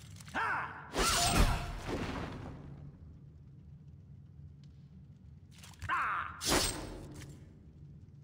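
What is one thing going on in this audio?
A magic blast strikes with a loud whooshing burst.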